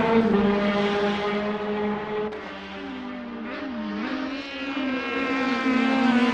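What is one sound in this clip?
Racing car engines roar loudly, their pitch rising and falling as the cars shift gears.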